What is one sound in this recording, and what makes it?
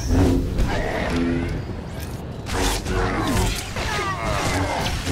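Lightsaber blades clash with sharp crackling hits.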